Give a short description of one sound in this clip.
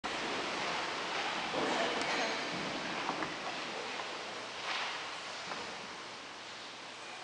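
A man speaks slowly through a loudspeaker in a large echoing hall.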